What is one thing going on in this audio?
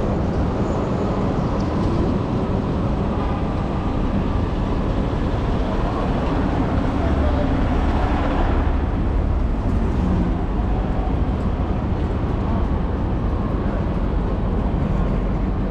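City traffic rumbles nearby.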